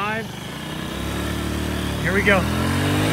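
A scooter engine revs and rises in pitch as it pulls away.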